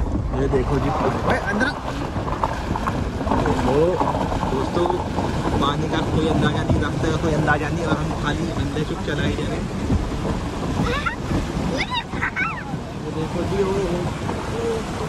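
Muddy floodwater splashes and rushes against the side of a moving vehicle.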